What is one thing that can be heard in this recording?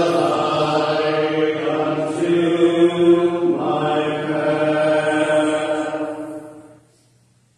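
An organ plays slow, sustained chords in an echoing hall, then fades out.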